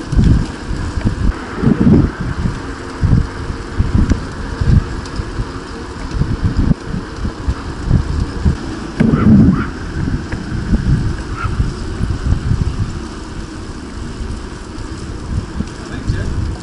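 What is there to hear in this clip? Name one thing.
Wind buffets and rumbles outdoors while riding a bicycle.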